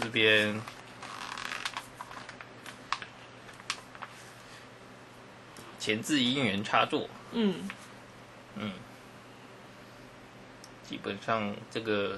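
Paper rustles softly as a booklet is handled.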